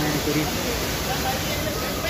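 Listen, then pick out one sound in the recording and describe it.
Water pours and splashes down a rock face.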